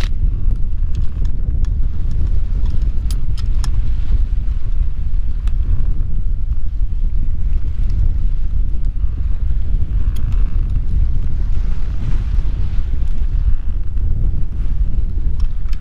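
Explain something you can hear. Strong wind rumbles steadily outdoors.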